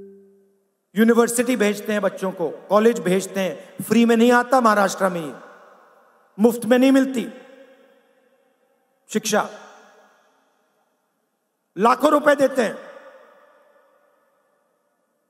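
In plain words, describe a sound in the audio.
A man speaks forcefully into a microphone, his voice echoing through loudspeakers in a large open space.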